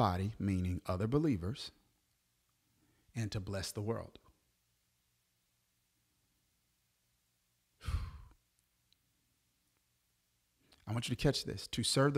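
A man speaks with animation into a close microphone, in bursts with pauses.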